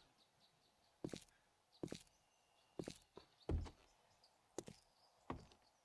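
Footsteps walk steadily on hard ground.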